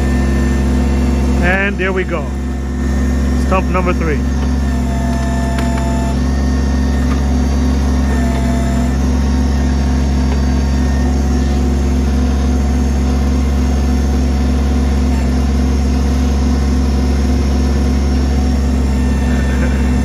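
A compact tractor's three-cylinder diesel engine runs under load as its backhoe works.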